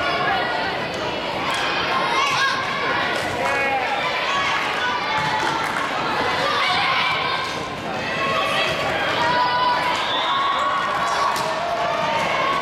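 A volleyball is struck with firm slaps.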